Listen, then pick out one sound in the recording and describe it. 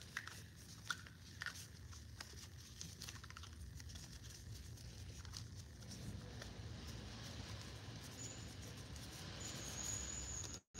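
A plastic spray bottle cap clicks and rattles as it is twisted on.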